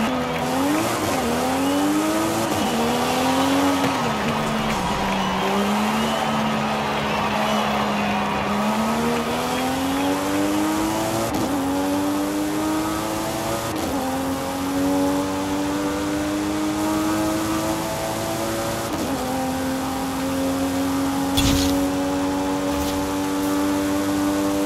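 A car engine revs hard and shifts up through the gears as it speeds up.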